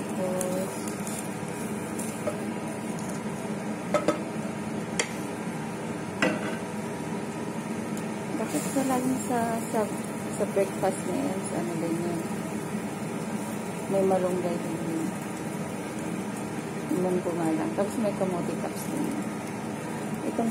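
A gas burner hisses steadily.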